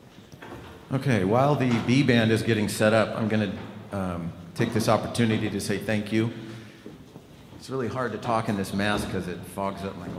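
A man speaks into a microphone through loudspeakers in a large hall.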